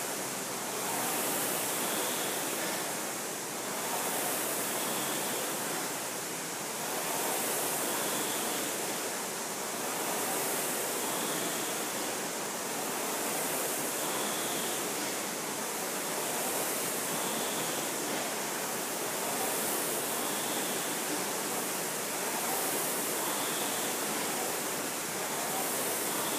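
Rowing machine flywheels whir loudly, swelling and fading with each stroke in a steady rhythm.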